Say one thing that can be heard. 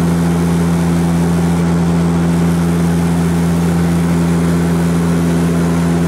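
Jet engines drone steadily with a low hum.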